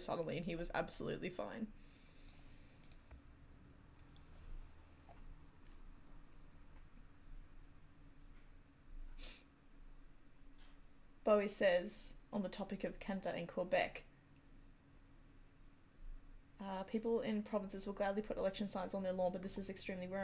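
A woman talks calmly into a close microphone, with pauses.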